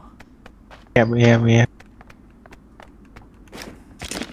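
Footsteps crunch quickly on the ground.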